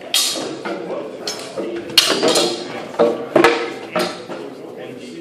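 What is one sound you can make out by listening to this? Swords clash and clack sharply in a large echoing hall.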